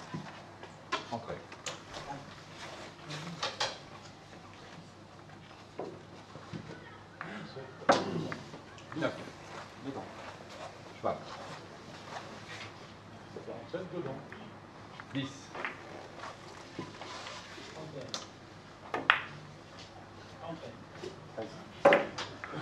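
Billiard balls click sharply against each other.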